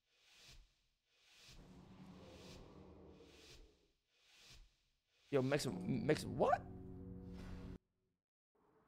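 Magical spell effects whoosh and chime in a game.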